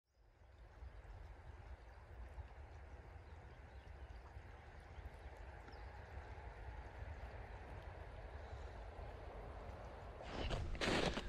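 A shallow stream flows and gurgles steadily.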